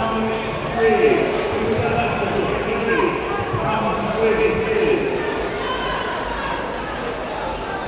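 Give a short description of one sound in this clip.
Men shout and call out loudly across a large echoing hall.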